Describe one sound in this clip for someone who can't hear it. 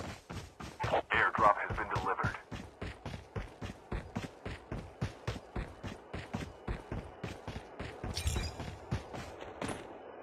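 Footsteps thud quickly and evenly on soft ground.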